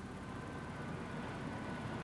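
A conveyor belt rumbles steadily as it carries rocks.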